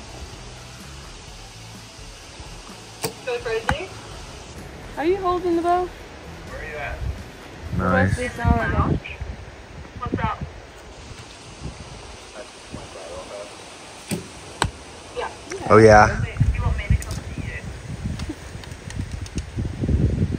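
An arrow thuds into a target.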